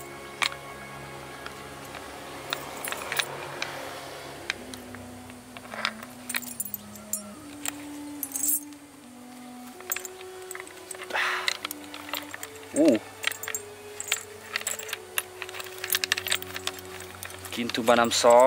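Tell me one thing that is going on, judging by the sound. A metal chain clinks and rattles.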